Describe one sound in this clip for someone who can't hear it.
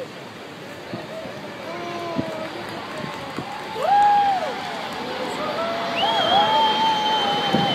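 A large jet plane roars low overhead, growing steadily louder.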